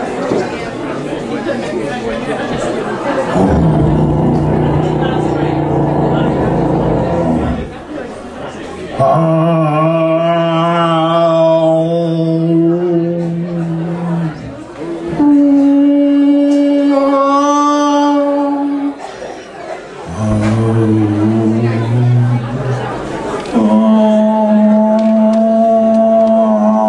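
A man sings long, drawn-out notes.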